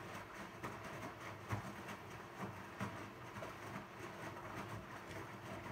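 A washing machine drum turns, tumbling clothes with soft thuds.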